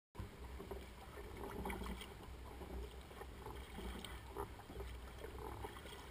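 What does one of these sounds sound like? A paddle dips and splashes in calm water.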